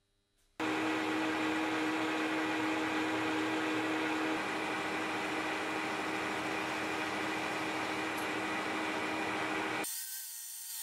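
A lathe motor hums steadily as a cutter turns metal.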